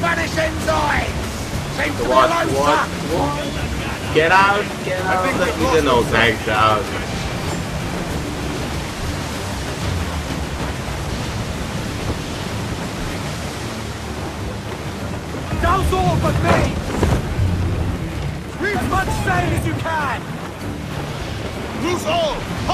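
Wind blows through a ship's sails and rigging.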